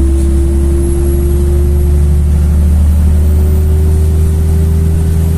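A vehicle's engine hums steadily from inside, with a low drone.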